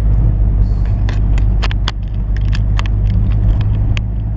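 Loose things rattle inside the car as it bumps along.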